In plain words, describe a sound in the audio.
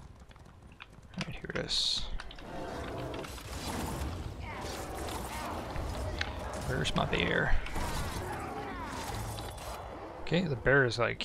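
Weapons strike and clash in a fight.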